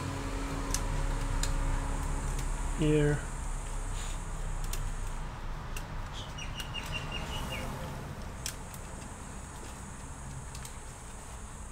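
Small plastic parts click and tap.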